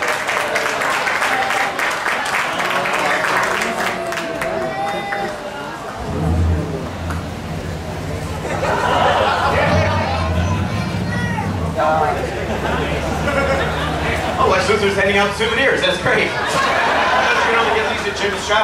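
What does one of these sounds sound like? A man speaks to an audience, his voice carrying through a large tent.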